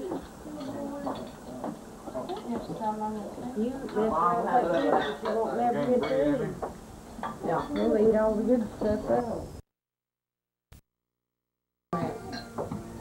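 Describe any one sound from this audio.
An older woman talks close by with animation.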